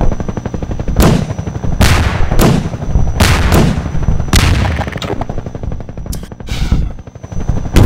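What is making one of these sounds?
A submachine gun fires short bursts.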